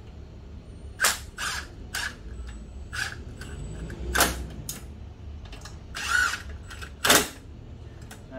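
Metal parts clank against a bike frame.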